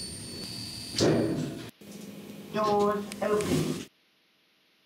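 Elevator doors slide open with a rumble.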